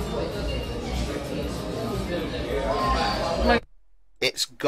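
A crowd of people chatters in a busy room.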